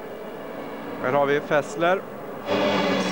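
Race car engines roar past at high speed.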